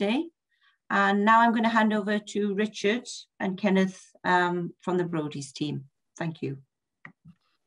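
A middle-aged woman talks calmly over an online call.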